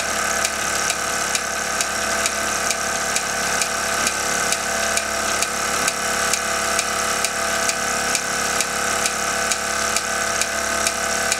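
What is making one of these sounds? A toy steam engine runs with a steady hiss and a regular ticking beat.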